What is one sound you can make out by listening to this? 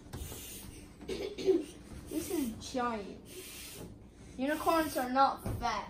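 A young boy talks excitedly close by.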